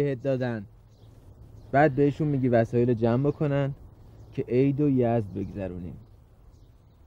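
A man speaks in a low, urgent voice close by.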